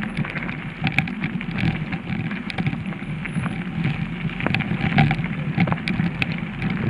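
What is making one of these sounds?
Bicycle tyres crunch and rattle over gravel.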